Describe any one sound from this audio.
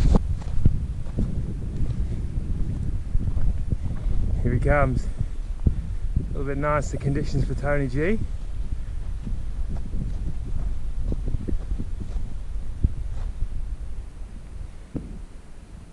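Wind rumbles and buffets against the microphone outdoors.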